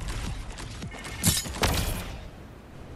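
A wooden structure shatters with a loud crash.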